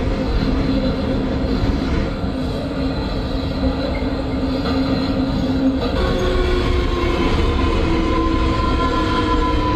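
A train's motor hums with a steady whine that shifts in pitch.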